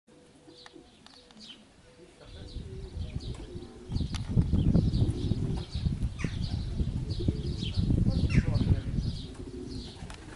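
Pigeons coo and flutter nearby.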